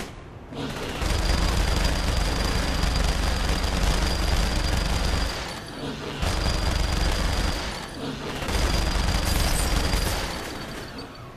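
A machine gun fires long, rapid bursts.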